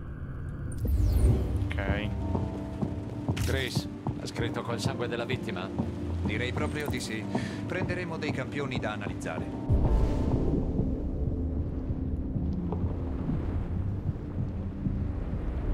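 A young man talks.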